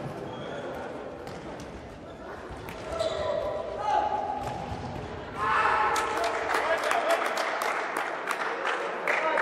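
A ball is kicked with sharp thuds in a large echoing hall.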